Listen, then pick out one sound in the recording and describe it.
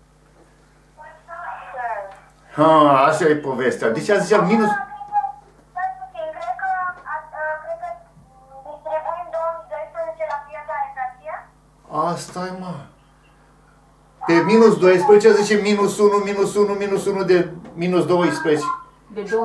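An elderly man lectures with animation.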